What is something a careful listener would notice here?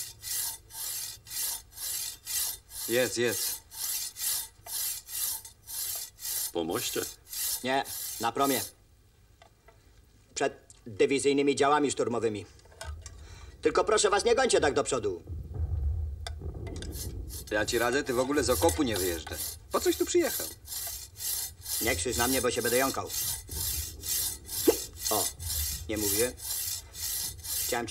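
Spoons scrape and clink against metal bowls.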